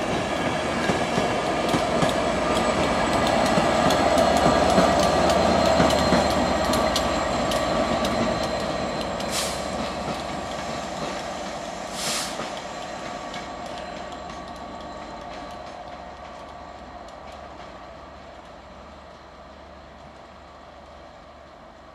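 A diesel locomotive engine roars loudly as it passes close by and then fades into the distance.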